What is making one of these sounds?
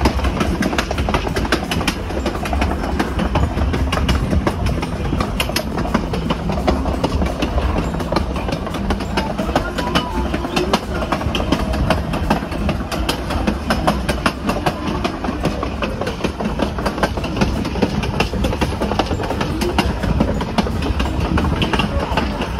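A train rumbles steadily along rails.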